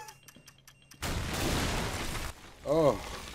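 An explosion booms with a roar of fire.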